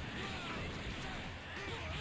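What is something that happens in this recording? A rushing whoosh sweeps past.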